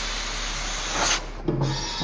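An air hose hisses briefly into a tyre valve.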